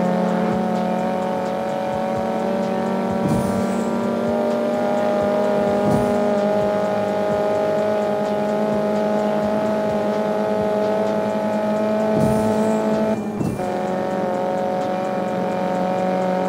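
A sports car engine revs high and steady as the car speeds along.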